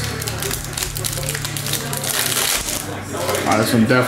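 A foil pack crinkles as it is torn open.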